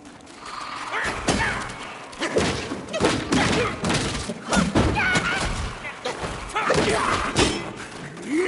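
A staff swishes and thuds against a creature in a fight.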